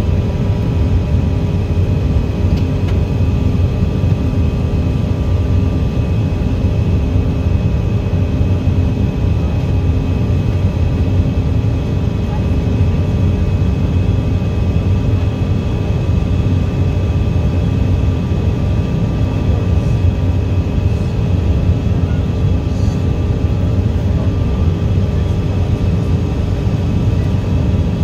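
A small plane's engine drones loudly and steadily inside the cabin.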